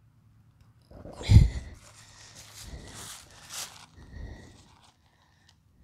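Tent fabric rustles and crinkles as a man handles it.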